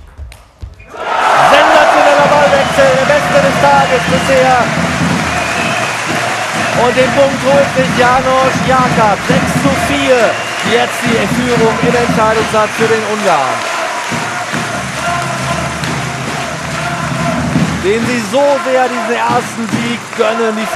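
A crowd cheers in a large hall.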